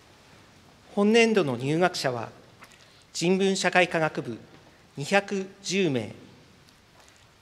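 A middle-aged man speaks calmly and formally through a microphone in a large hall.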